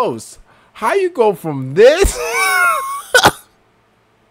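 A young man speaks excitedly close to a microphone.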